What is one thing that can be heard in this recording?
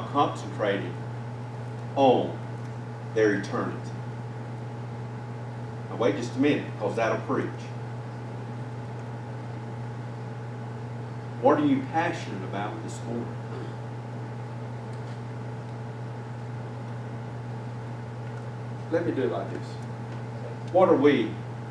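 A man speaks slowly and calmly into a microphone, with long pauses.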